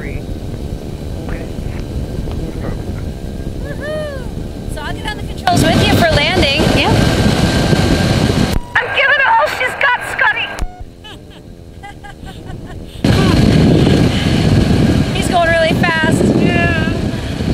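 A small aircraft engine drones loudly and steadily.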